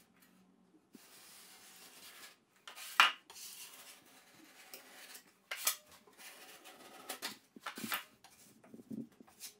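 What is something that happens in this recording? A taping knife spreads and scrapes joint compound on drywall.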